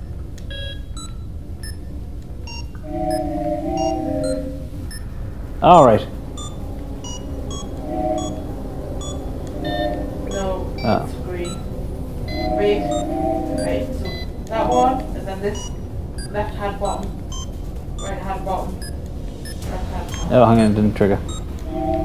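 Electronic beeps and chimes sound in short bursts.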